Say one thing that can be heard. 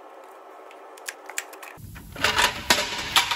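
Tools clink and knock against metal parts.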